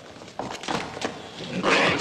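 Flames crackle.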